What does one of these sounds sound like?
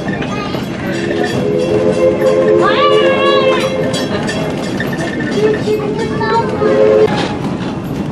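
A train horn blares in long blasts.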